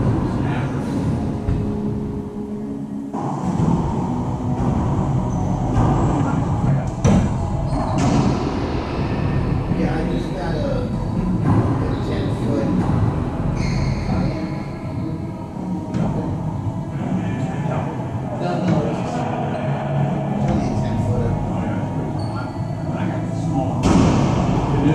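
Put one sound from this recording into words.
A ball smacks off paddles and walls with sharp echoing pops.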